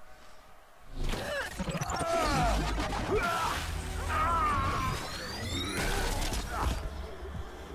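A heavy blow lands with a crackling burst of energy.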